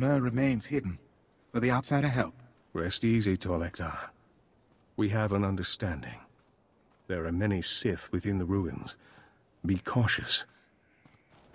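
A man speaks calmly in a deep voice, close by.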